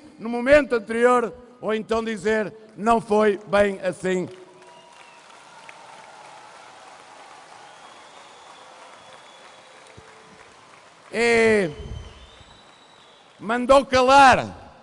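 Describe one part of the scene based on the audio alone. A middle-aged man speaks forcefully into a microphone, heard through loudspeakers in a large hall.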